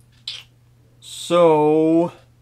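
A young man lets out a loud, drawn-out vocal sound.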